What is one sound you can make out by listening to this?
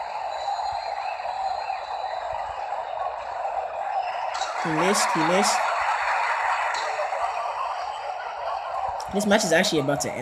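A large crowd cheers steadily in an arena.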